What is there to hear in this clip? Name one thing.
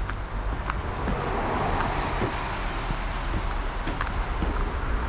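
Car tyres hiss past on a nearby road.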